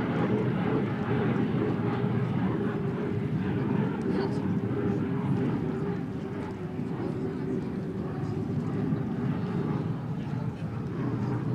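A racing hydroplane's engine roars loudly and steadily as the boat speeds across the water.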